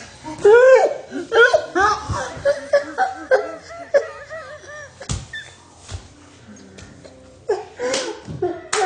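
A girl sings close by in a high, playful voice.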